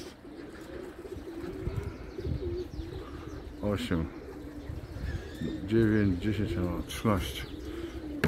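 Pigeons flap their wings in short bursts.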